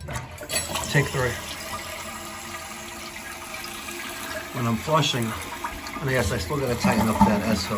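Water trickles and splashes as a toilet tank refills.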